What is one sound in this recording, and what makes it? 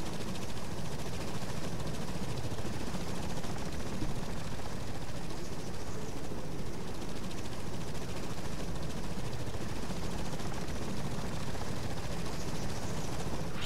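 A helicopter's rotor thuds in the distance.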